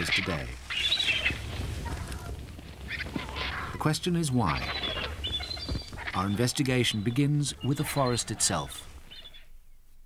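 Large wings flap and beat heavily.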